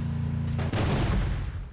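A car engine rumbles.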